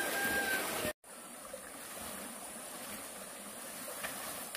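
A stream trickles over stones nearby.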